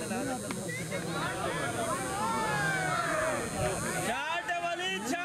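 Men shout and cheer excitedly.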